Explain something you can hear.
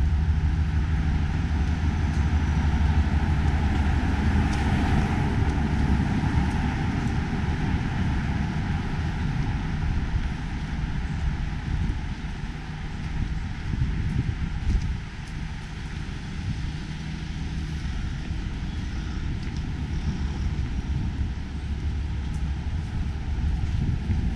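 Footsteps patter on a pavement.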